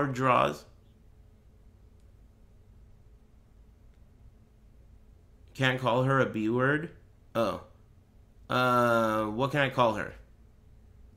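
A man speaks into a close microphone with animation, in short bursts with pauses.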